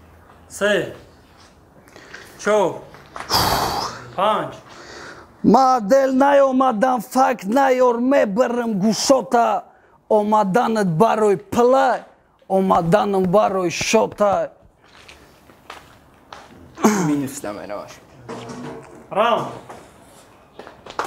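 A young man raps rhythmically and with animation close by.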